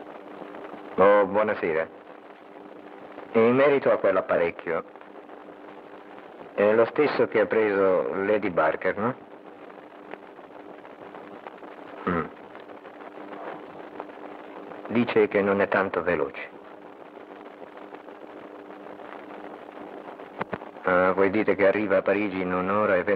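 A man speaks calmly into a telephone in short bursts with pauses.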